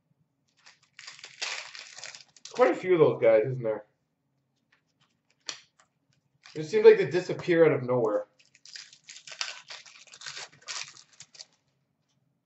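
Trading cards rustle and flick against each other as they are sorted by hand.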